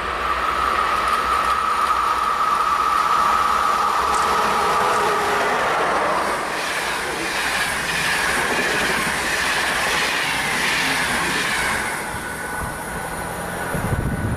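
A passenger train rumbles and clatters past along the tracks, then fades into the distance.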